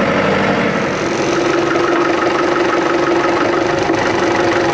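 A tractor's hydraulics whine as the loader lifts.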